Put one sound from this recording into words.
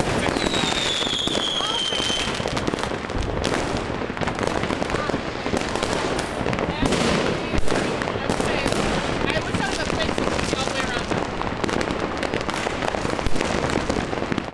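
Fireworks bang loudly now and then.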